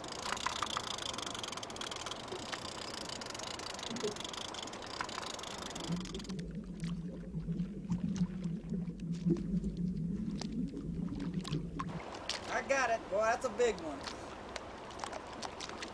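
A fishing line splashes through the water.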